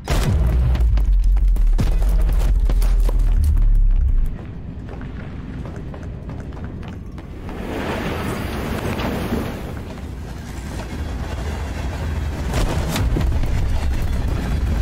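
A child's footsteps patter across a wooden floor.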